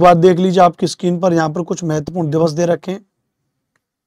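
A man speaks with animation, close to a clip-on microphone.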